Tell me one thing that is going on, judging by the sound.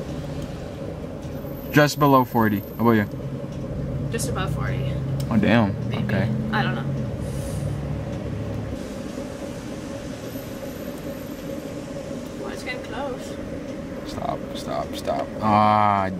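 A fuel pump hums steadily.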